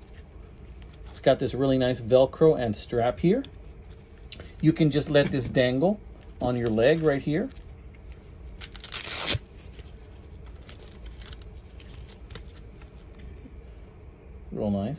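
Fabric rustles and scrapes as it is handled.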